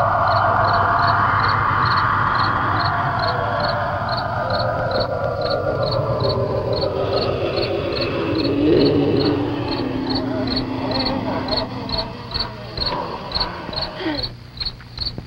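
Tense orchestral music plays with swelling strings.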